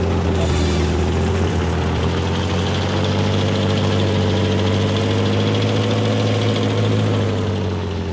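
A tank engine rumbles steadily as a tank drives.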